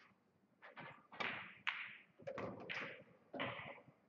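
Billiard balls clack together on the table.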